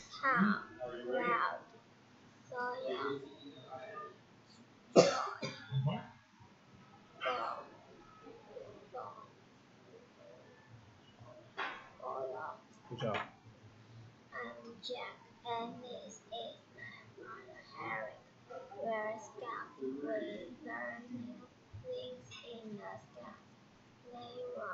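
A young girl talks calmly close to a microphone.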